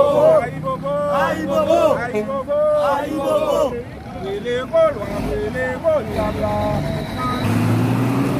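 A man chants loudly with animation close by, outdoors.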